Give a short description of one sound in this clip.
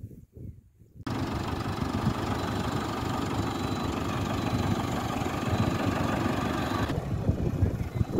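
A tractor engine idles.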